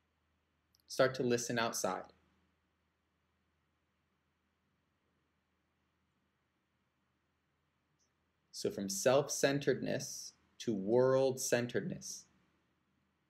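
A man speaks calmly and close to a microphone, in short bursts.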